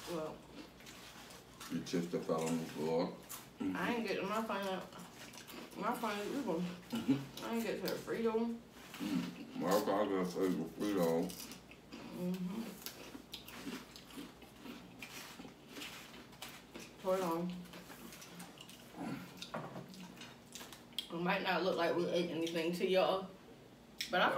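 Chips crunch as people chew.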